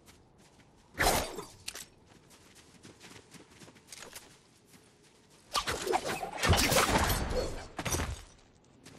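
Quick footsteps patter across grass.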